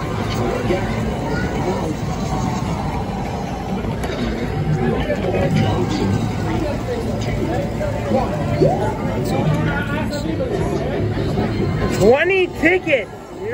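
An arcade machine plays bright music through its loudspeaker.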